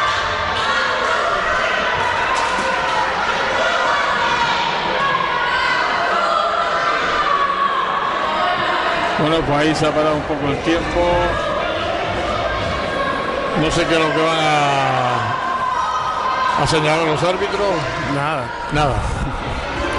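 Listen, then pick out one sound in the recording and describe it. A crowd chatters and chants loudly in a large echoing hall.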